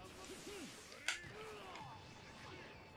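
A blast booms.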